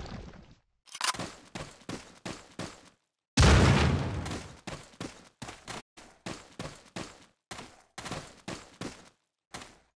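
Footsteps crunch on a dirt and stone floor.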